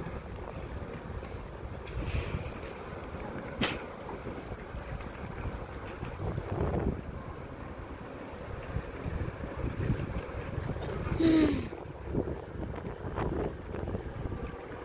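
Wind blows and buffets the microphone outdoors.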